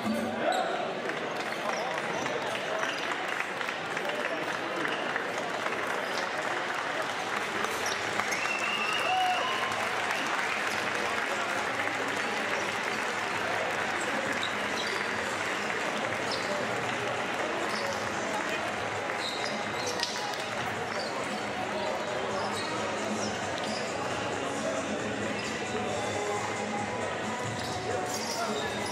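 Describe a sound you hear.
A large crowd cheers and claps in an echoing arena.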